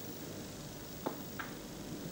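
A cue tip taps a snooker ball.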